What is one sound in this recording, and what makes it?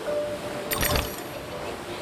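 A magical burst sounds with a bright shimmering whoosh.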